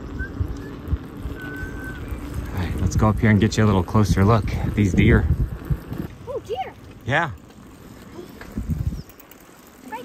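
Bicycle tyres roll and rumble over a paved road.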